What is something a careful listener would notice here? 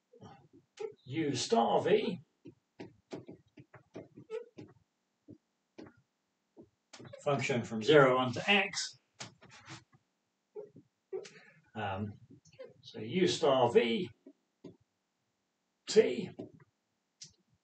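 A man speaks calmly through a microphone, explaining in a lecturing tone.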